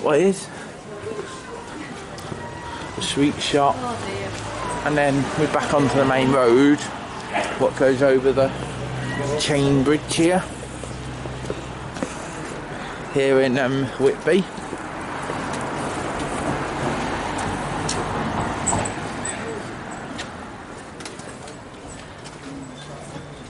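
A car drives past on a nearby street.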